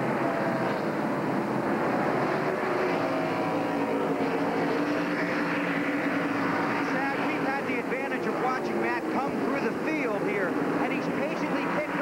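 Race car engines roar at high speed, rising and falling as they pass.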